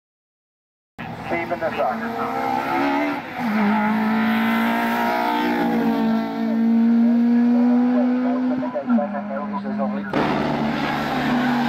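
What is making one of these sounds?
A four-cylinder racing hatchback accelerates hard at full throttle, its engine rising and shifting up through the gears.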